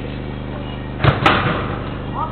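A ball is kicked with a sharp thud.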